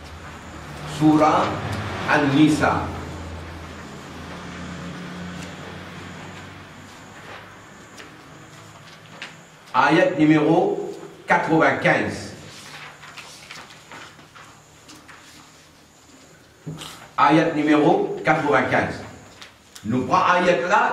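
An elderly man speaks calmly and steadily close to a microphone, with pauses.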